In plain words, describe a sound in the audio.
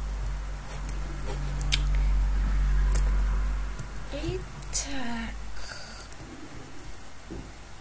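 Leafy blocks crunch and pop as they are broken.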